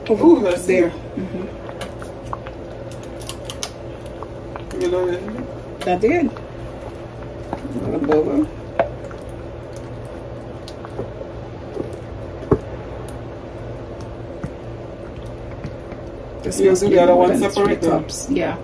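A thick sauce bubbles and pops in a pot.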